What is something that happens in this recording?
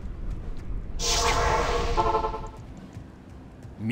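A magic portal opens with a humming whoosh.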